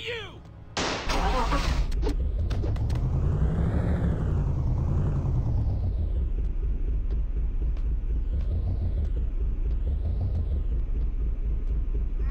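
A car engine starts and roars, revving up and down.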